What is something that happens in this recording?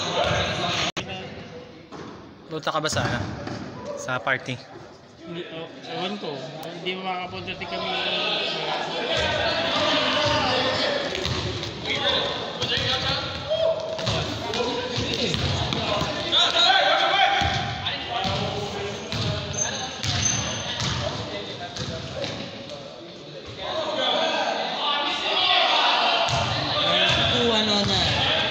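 Basketballs bounce on a hard floor in a large echoing gym.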